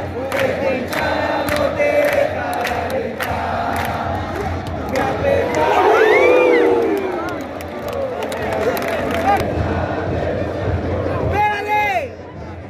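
A large stadium crowd roars and chants loudly outdoors.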